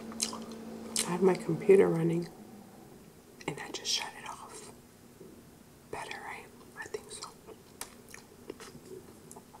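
A young woman speaks softly and close up.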